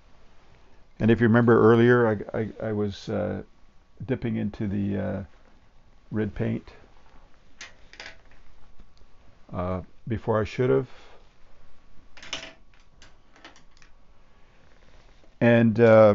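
An older man talks calmly and close by, with pauses.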